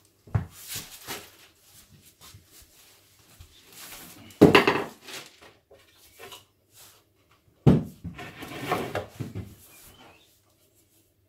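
Wooden boards knock and clatter against each other.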